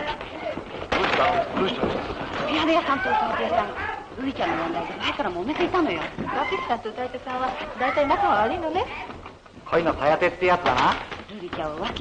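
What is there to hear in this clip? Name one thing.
Several women talk over each other excitedly.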